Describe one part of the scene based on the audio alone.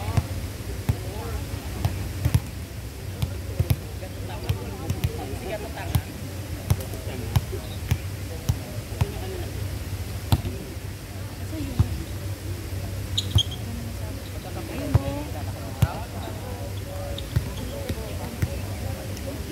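A volleyball is struck with hands and thumps repeatedly.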